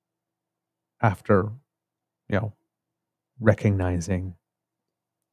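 A middle-aged man speaks in short phrases over an online call.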